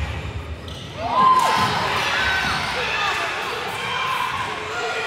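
Sneakers squeak sharply on a floor, in a large echoing hall.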